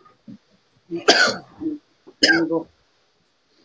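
A man coughs harshly over an online call.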